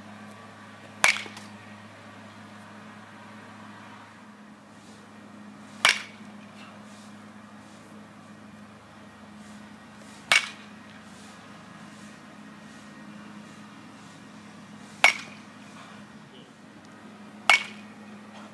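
A bat cracks sharply against a baseball, again and again at a steady pace.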